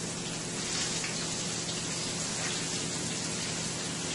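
Fish is set into a frying pan with a soft splash.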